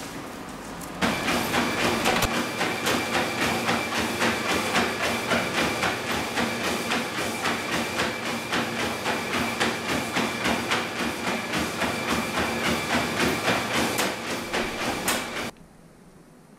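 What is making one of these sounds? A dog's paws pad rhythmically on a moving treadmill belt.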